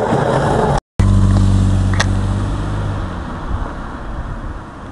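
A car engine hums low and close, then fades away.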